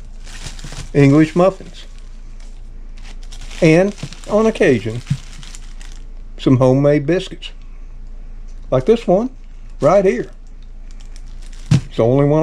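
A plastic bread bag crinkles as it is handled.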